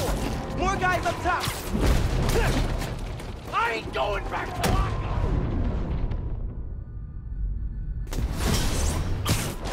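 Punches and kicks thud in a brawl.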